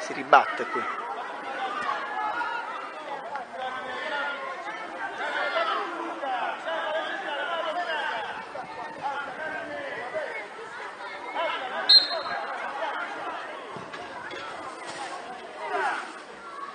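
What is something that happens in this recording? Children and adults shout and chatter outdoors.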